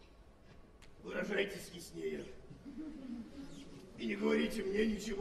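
A second man answers softly in a large hall.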